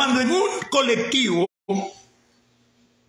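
An older man speaks with animation close to a phone microphone.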